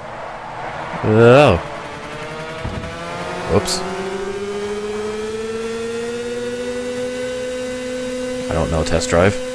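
Other kart engines whine past close by.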